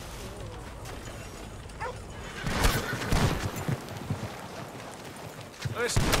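A horse-drawn wagon rattles along a dirt road.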